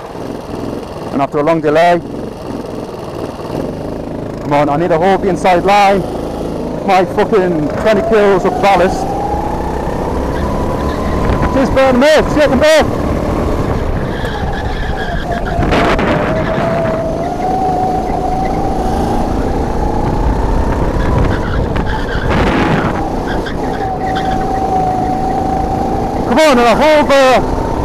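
A racing kart engine revs hard, rising and falling through the corners.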